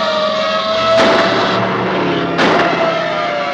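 Gunshots crack twice.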